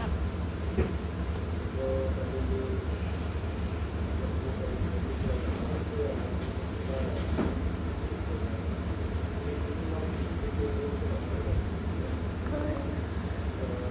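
A man sings into a microphone, heard faintly through a phone speaker.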